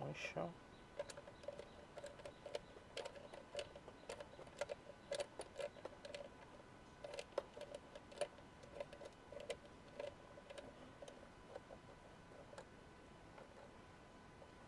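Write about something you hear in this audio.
Plastic engine parts click and rattle as hands work on them.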